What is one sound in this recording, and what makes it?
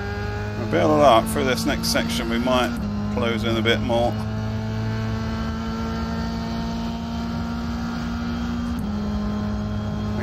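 A racing car engine drones steadily, shifting gear now and then.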